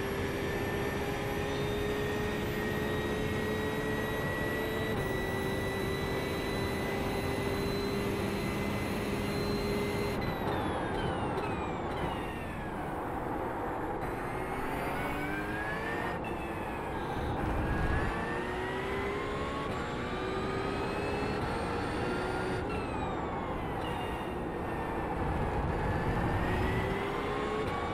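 A racing car engine drones steadily at high speed, then revs up and down through the gears.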